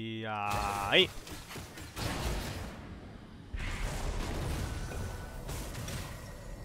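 Game spells crackle and burst.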